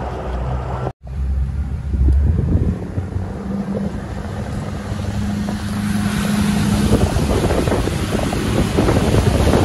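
Water rushes and splashes behind a moving boat.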